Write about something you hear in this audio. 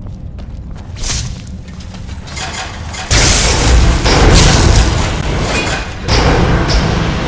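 Magic lightning crackles and hums loudly.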